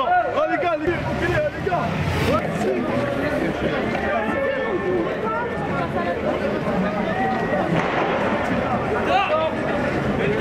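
A crowd shouts and chants outdoors.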